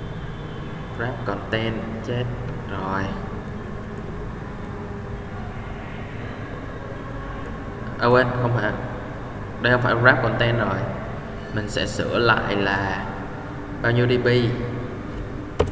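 A young man speaks calmly into a nearby microphone, with pauses.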